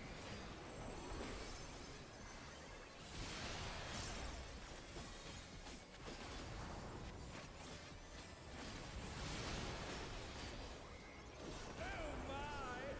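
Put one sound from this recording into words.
Magic spells whoosh and crackle in a loud fight.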